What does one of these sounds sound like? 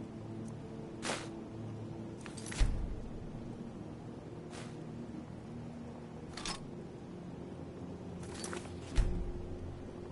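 Short game menu sounds click and thump now and then.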